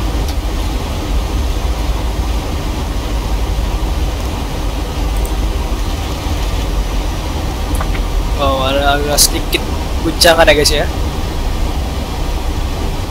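A jet's engines drone with a low, steady rumble.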